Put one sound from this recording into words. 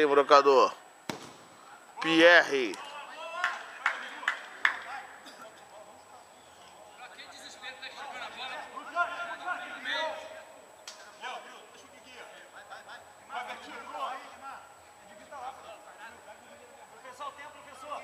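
Young men shout across an open outdoor field.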